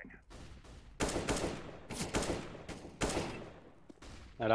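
A rifle fires in quick bursts of shots.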